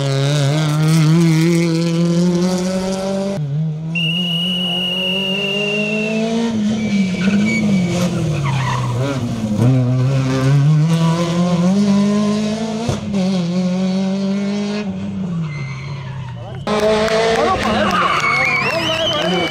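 A rally car engine roars and revs as the car speeds by.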